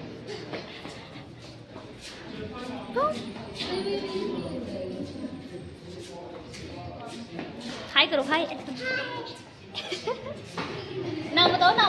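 A little girl laughs and chatters nearby.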